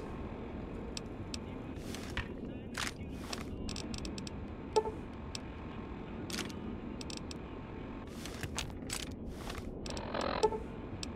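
Game menu clicks and beeps sound in quick bursts.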